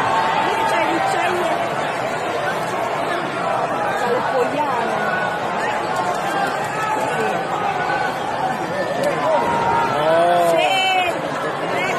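A large crowd chatters and cheers in an echoing arena.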